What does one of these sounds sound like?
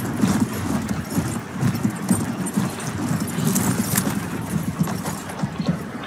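Horse hooves thud on a dirt path.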